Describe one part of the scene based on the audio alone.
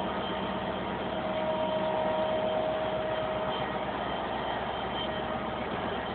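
A diesel locomotive rumbles past close by.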